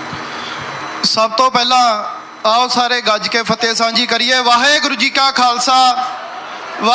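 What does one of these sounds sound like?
A young man speaks forcefully into a microphone over loudspeakers.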